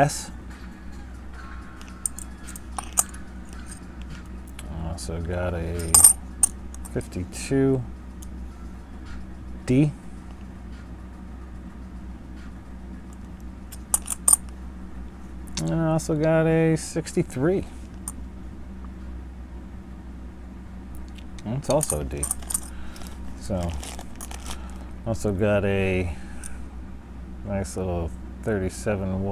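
Metal coins clink lightly against each other.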